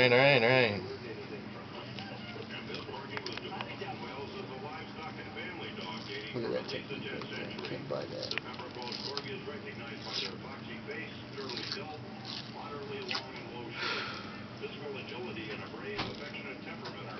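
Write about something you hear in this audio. A plastic dressing crinkles and peels as it is pulled from skin.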